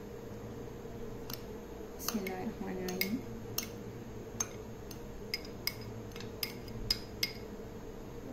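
Dry flakes pour and patter into a metal bowl.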